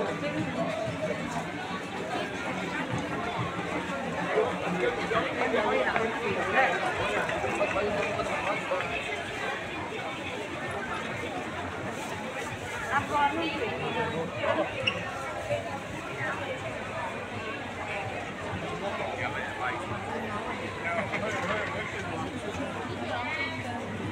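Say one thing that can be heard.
A dense crowd chatters all around in a large echoing hall.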